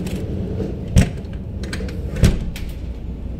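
A door handle clicks and rattles.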